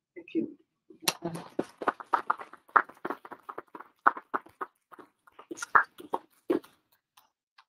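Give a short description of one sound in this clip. A small audience claps.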